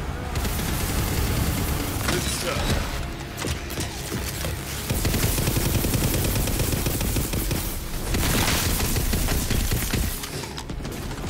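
A rapid-fire gun shoots in bursts.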